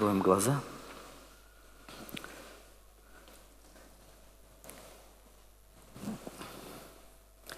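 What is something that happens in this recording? A man speaks through a microphone in a large echoing hall, pausing often.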